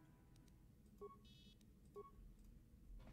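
Electronic beeps sound twice in short succession.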